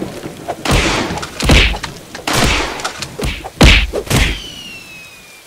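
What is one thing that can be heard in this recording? Heavy punches land with loud booming thuds.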